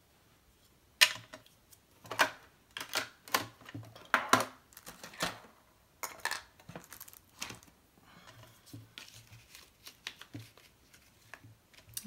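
Paper rustles and crinkles under hands.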